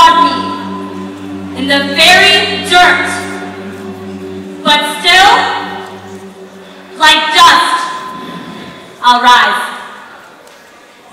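A group of young women sing together through microphones.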